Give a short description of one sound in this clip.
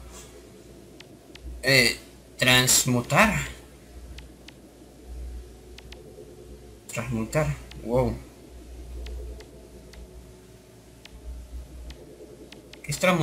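Soft, short electronic ticks sound now and then as a cursor moves over menu items.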